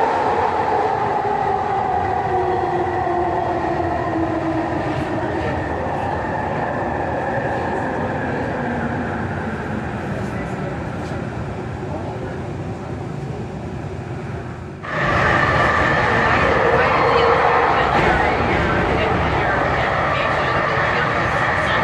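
A train rumbles steadily along its tracks.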